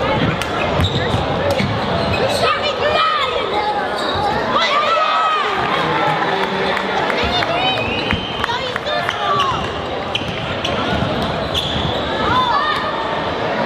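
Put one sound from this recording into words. A crowd in an echoing gym murmurs and calls out.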